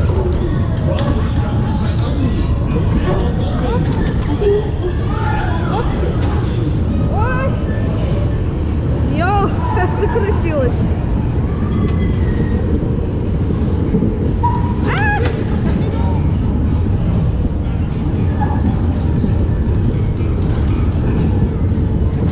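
Bumper cars bump into each other with dull thuds.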